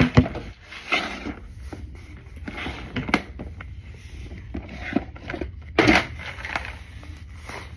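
Clothing rustles and knocks against a phone close by.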